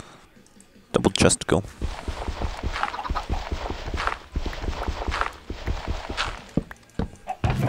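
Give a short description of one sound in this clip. Dirt blocks crunch repeatedly as they are dug out.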